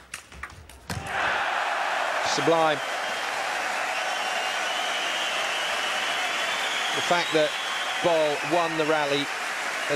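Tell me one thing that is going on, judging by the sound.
A large crowd cheers and applauds loudly in an echoing hall.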